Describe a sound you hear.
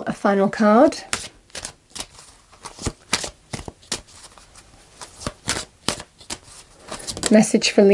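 Playing cards are shuffled, with quick soft flicks and taps.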